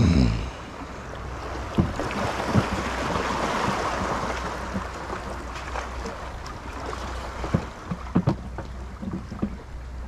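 Water laps and splashes gently against a rocky shore.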